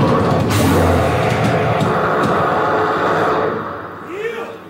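An electric guitar plays loudly through amplifiers.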